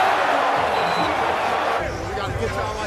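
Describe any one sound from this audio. A large crowd cheers loudly in an echoing arena.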